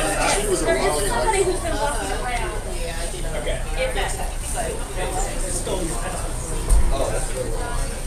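Several men and women chat at once in a room with a slight echo.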